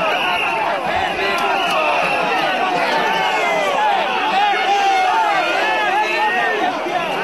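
A large crowd shouts and chants loudly close by.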